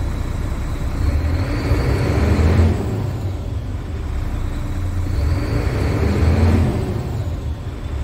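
A truck engine revs up twice and settles back.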